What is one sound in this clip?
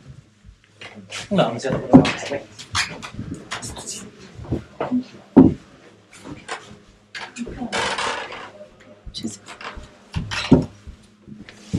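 Several people talk casually nearby.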